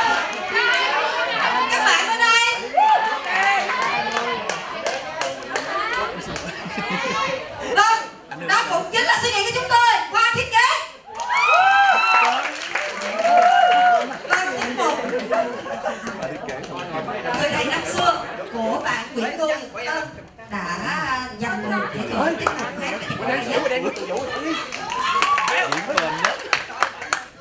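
An audience claps.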